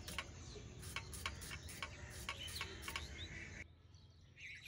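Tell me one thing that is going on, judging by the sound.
A knife taps and scrapes against a metal pan.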